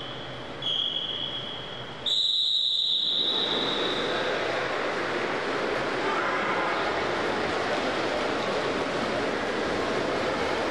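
A crowd of children cheers and shouts in an echoing hall.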